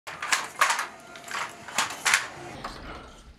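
A wooden hand loom clacks rhythmically.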